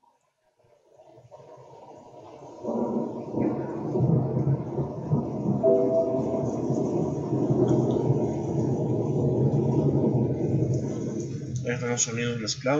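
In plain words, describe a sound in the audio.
Music plays through a computer's speakers.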